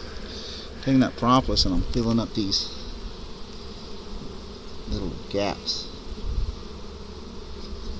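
Bees buzz softly close by.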